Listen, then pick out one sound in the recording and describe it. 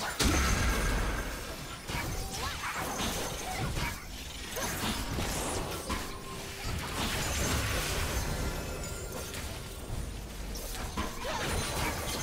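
Game spell effects and hits clash in a fast fight.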